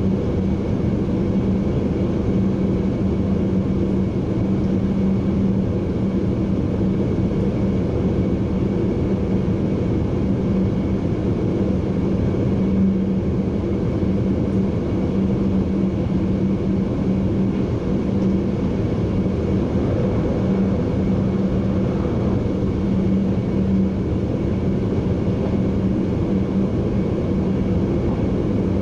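A train rumbles steadily along the tracks, its motor humming.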